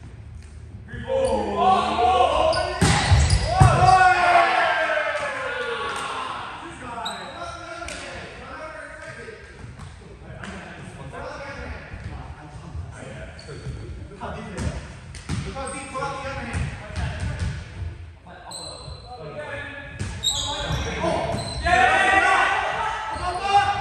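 Young men call out and shout to each other during play.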